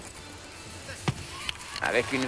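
A gymnast lands hard on a mat with a thud.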